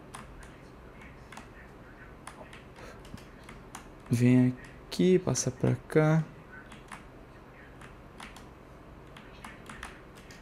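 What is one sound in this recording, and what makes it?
Soft game clicks tick as a character moves along.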